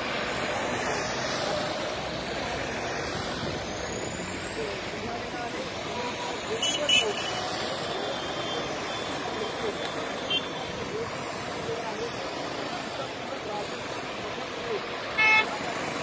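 Motorcycle engines hum as they pass.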